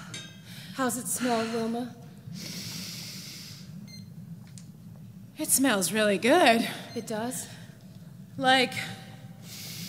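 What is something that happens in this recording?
A woman speaks expressively into a microphone.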